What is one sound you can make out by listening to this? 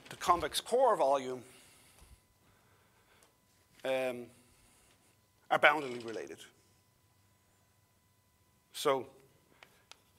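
An older man speaks in short bursts in a room with some echo.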